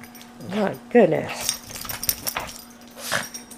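A dog's paws scuffle on a soft cushion.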